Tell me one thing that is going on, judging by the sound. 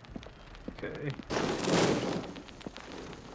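A creature lunges with a loud, rushing crash.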